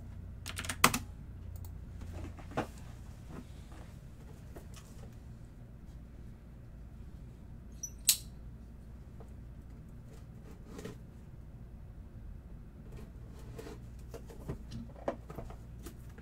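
A box is handled and tapped with small knocks.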